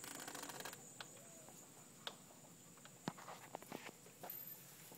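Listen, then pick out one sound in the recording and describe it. A bird's claws tap on a hard floor.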